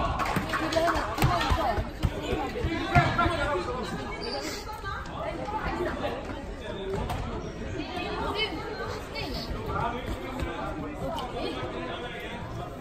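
Sneakers squeak and patter on a gym floor.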